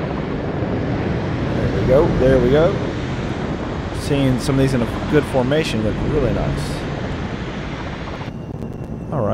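Jet engines roar steadily as an aircraft hovers.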